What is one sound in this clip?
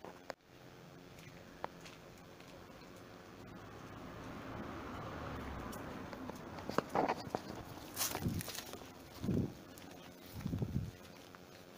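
Footsteps scuff along a paved path outdoors.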